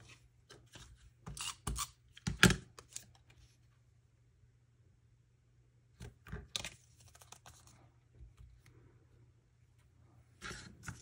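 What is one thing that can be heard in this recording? Paper rustles and slides as hands handle it.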